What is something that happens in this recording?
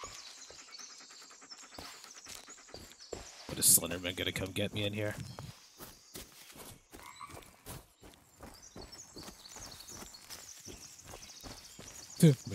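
Footsteps crunch steadily on a leafy forest floor.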